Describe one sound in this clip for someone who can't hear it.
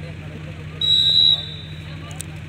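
A referee's whistle blows one short shrill blast.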